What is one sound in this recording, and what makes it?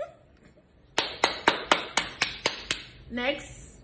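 A young woman laughs loudly in short bursts.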